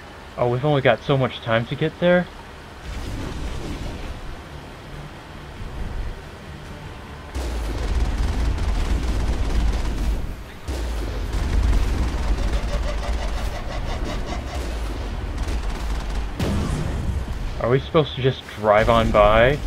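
Water splashes and rushes under tyres.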